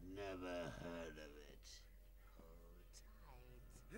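A man speaks with a gleeful, menacing tone.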